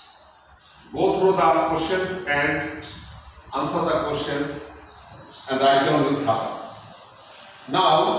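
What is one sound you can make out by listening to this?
An adult man reads out aloud in a steady, clear voice.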